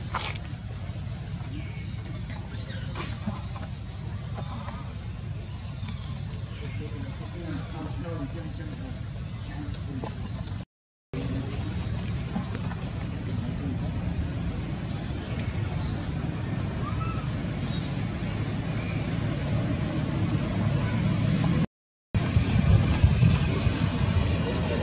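Leaves rustle as monkeys climb through a tree.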